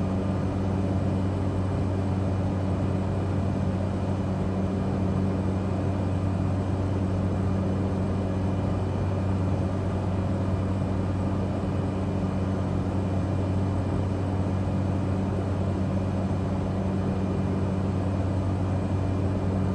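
A propeller aircraft engine drones steadily in flight.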